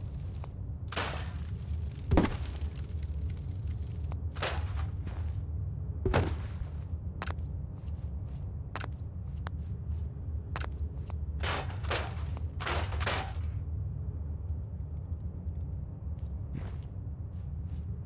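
Short whooshing and clicking game menu sounds play now and then.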